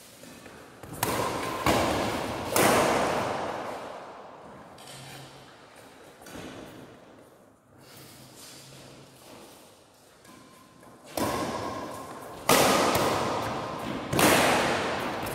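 Rackets smack a shuttlecock with sharp cracks that ring out in a large echoing hall.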